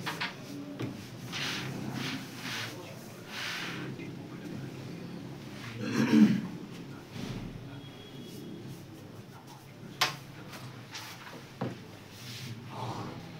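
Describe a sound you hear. Wooden game pieces clatter and scrape as hands shuffle them across a board.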